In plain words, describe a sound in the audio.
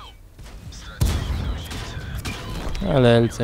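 A shell explodes with a loud blast.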